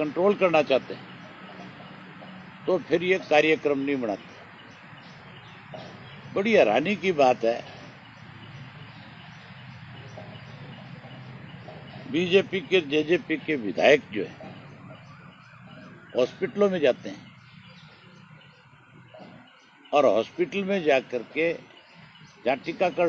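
A middle-aged man speaks with animation into microphones outdoors, in bursts with pauses.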